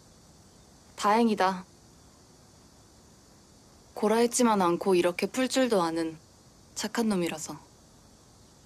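A young woman answers softly up close.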